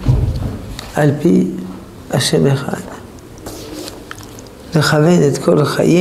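Pages of a book rustle as they are turned.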